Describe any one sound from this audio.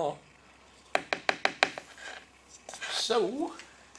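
A stick taps and scrapes inside a plastic bucket.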